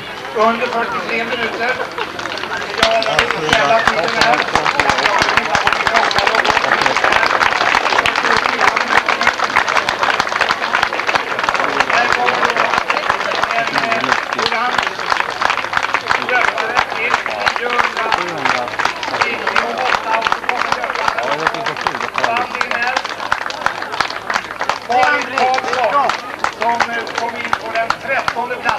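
A large outdoor crowd claps and cheers steadily.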